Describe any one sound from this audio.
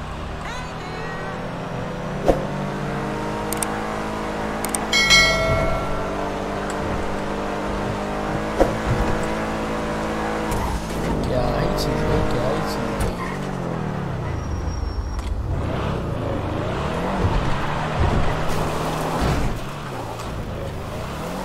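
A car engine hums and revs as the vehicle drives along.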